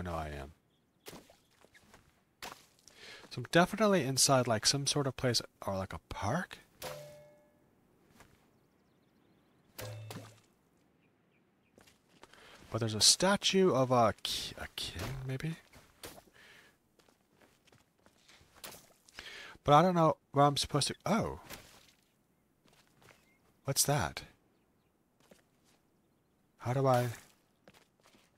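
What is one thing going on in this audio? A middle-aged man talks with animation into a close microphone, in bursts with pauses.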